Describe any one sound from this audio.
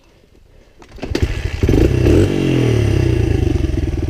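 A dirt bike's engine revs loudly up close.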